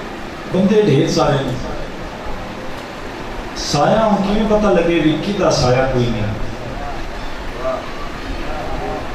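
A young man sings a mournful chant loudly into a microphone, heard through loudspeakers with echo.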